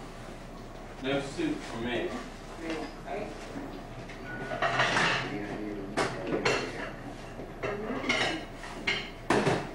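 Men talk with each other close by.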